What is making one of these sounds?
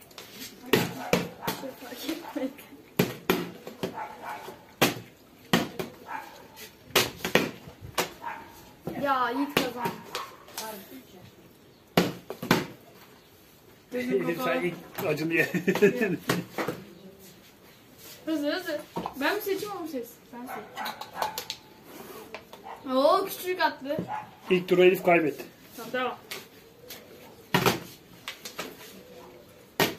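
Plastic bottles thump and clatter as they land on a table.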